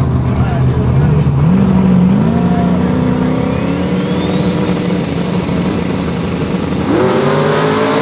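A race car engine revs higher and higher.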